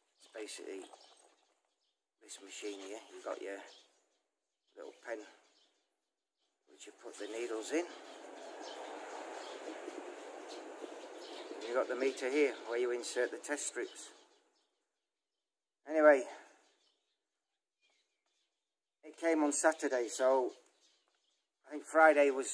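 An older man speaks close by, calmly and in short bursts.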